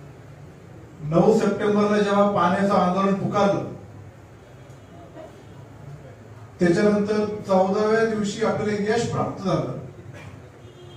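A man speaks loudly and with animation through a microphone, heard over loudspeakers in an echoing hall.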